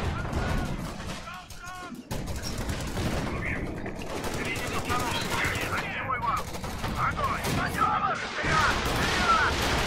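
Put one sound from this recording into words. Rifles and machine guns fire in rapid bursts.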